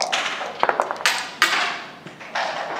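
Dice clatter onto a wooden board.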